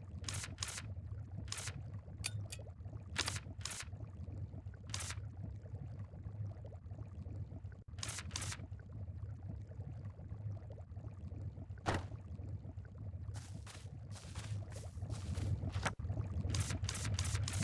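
Short soft menu blips sound again and again.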